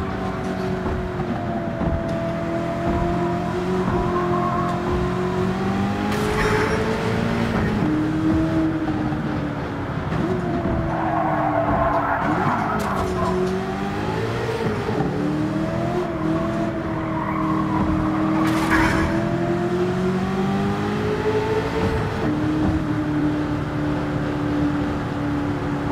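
A racing car engine roars loudly, rising and falling in pitch as the car speeds up and brakes.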